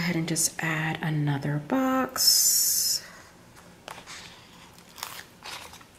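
A sheet of stickers rustles and crinkles.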